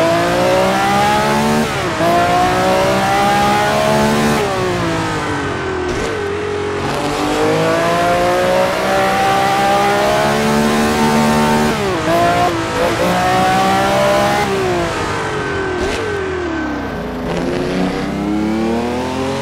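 A 1960s Formula One car's V12 engine screams at high revs as it accelerates through the gears, its pitch dropping sharply at each gear change.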